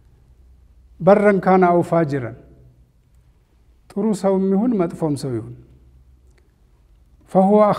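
A middle-aged man speaks slowly and solemnly into a close microphone, in short phrases with pauses.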